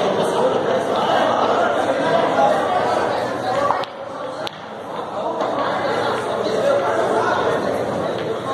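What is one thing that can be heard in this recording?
Several men talk casually nearby.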